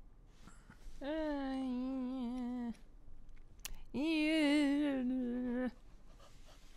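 A short game tune sounds with a wavering, sung-like pitch.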